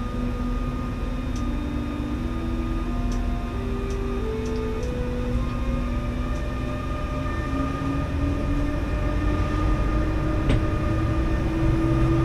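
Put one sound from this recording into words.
An electric train motor whines, its pitch rising in steps as it speeds up.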